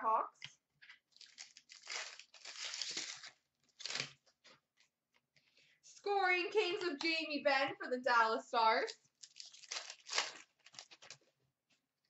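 A foil card wrapper crinkles and tears as it is opened.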